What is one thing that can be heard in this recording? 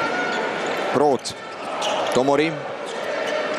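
A referee's whistle blows sharply twice.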